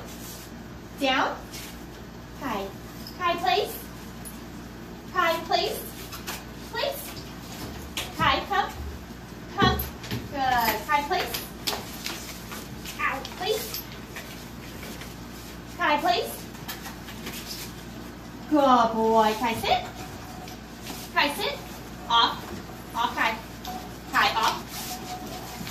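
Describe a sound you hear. A young woman speaks calmly and encouragingly, close by.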